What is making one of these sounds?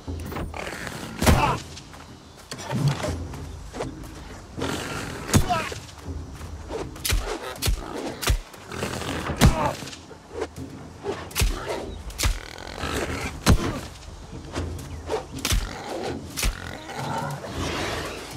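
A wild boar grunts and squeals.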